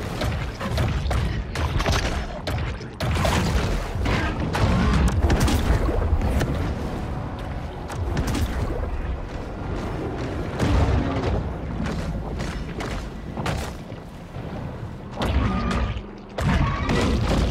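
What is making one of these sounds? Jaws snap and bite with heavy crunches.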